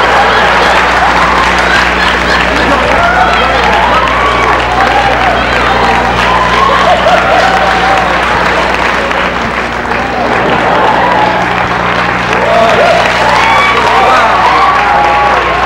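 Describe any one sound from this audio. A crowd of men and women chant and sing loudly.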